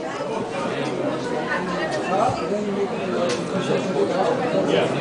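A crowd murmurs and talks in a busy room.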